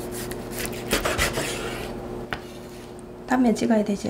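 A knife cuts through food onto a wooden board.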